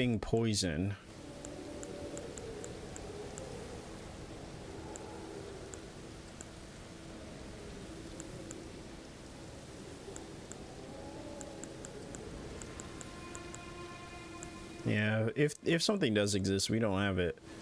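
Soft menu clicks tick quickly in a game.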